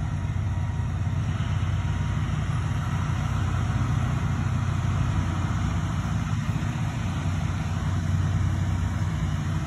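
A remote-controlled shed mover runs under load, pushing a shed.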